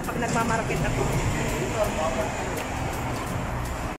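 A bus engine idles and hums nearby.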